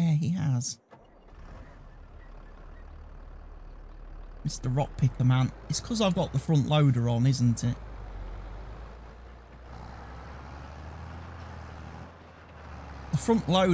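A tractor engine starts and idles with a steady low rumble.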